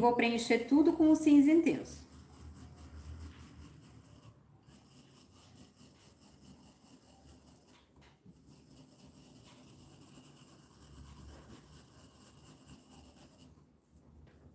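A paintbrush brushes softly across a wooden board.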